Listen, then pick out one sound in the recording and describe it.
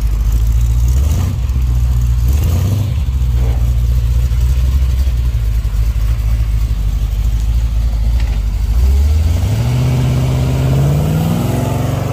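A classic car's engine revs up as the car pulls away.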